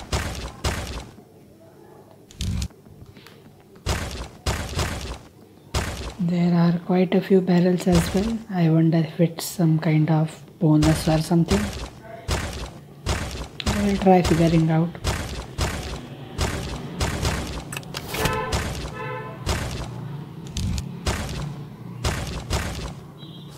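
Short game sound effects chime as coins and stars are collected.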